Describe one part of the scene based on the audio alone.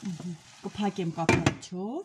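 A metal lid clatters onto a pan.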